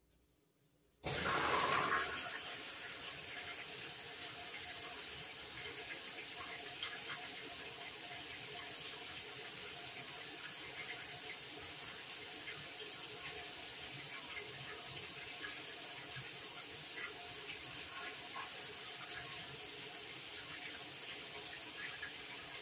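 A top-load washing machine runs.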